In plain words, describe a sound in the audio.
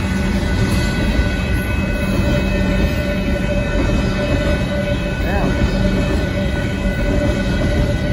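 A freight train rumbles past on the tracks.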